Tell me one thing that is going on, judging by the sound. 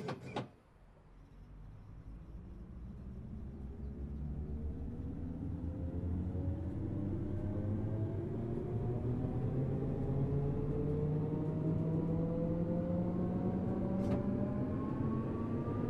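An electric train motor whines, rising steadily in pitch as the train speeds up.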